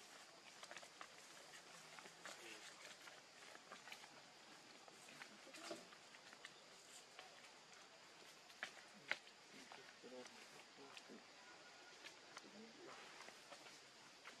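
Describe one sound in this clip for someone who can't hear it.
Leaves rustle softly as small monkeys move among them.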